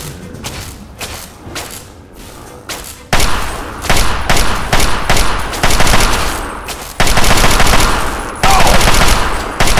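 A laser rifle fires in rapid bursts.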